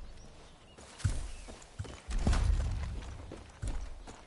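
Gunshots crack loudly and echo.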